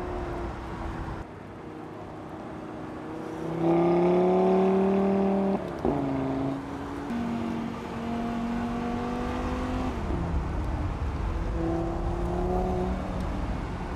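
A sports car engine roars and revs.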